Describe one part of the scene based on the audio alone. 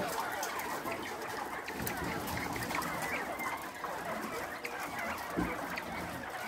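Many birds chirp and cheep steadily close by.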